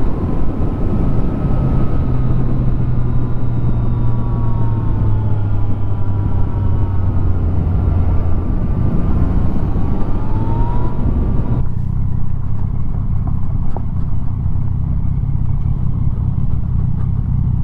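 A motorcycle engine hums steadily and shifts in pitch.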